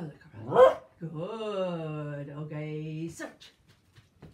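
A dog whines in a long, wavering cry.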